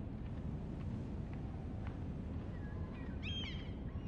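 Footsteps tap lightly on a wooden floor.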